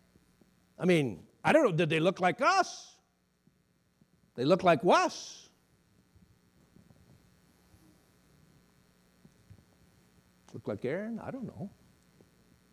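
A middle-aged man speaks with animation through a microphone, in an echoing hall, pausing between phrases.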